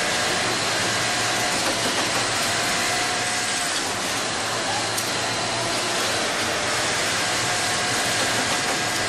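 Many sewing machines hum and whir steadily.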